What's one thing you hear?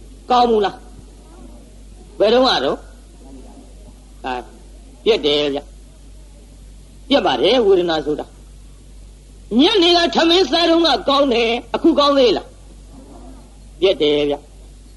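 An elderly man speaks calmly in short phrases, with pauses between them.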